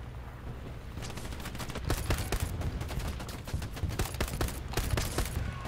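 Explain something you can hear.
Gunshots crack in rapid bursts close by.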